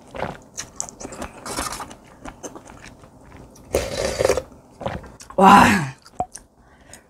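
A young woman slurps soup noisily close to a microphone.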